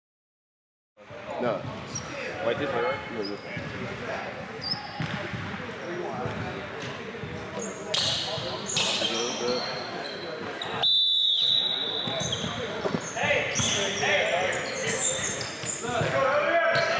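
A crowd of young men talks and calls out in a large echoing gym.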